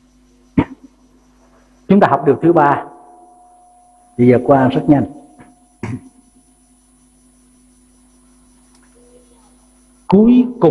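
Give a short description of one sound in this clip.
An elderly man speaks slowly and calmly through a microphone, in short phrases with pauses.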